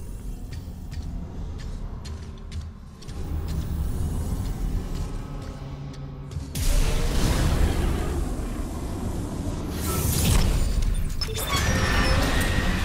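Heavy metal boots clank on a metal floor.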